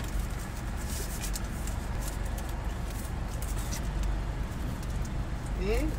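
A plastic wrapper crinkles in a woman's hands.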